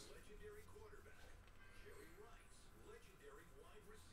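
Cards rustle and flick as they are shuffled by hand.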